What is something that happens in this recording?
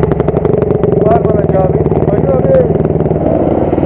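Other dirt bike engines rumble nearby.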